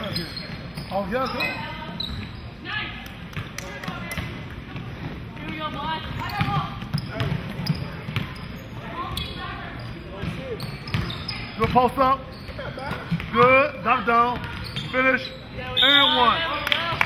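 Young women shout and call out across a large echoing gym.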